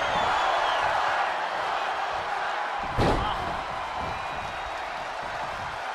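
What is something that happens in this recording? A large crowd cheers loudly throughout.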